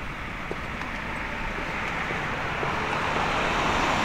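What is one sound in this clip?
A car approaches and grows louder.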